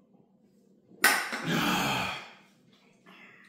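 A man exhales loudly after drinking.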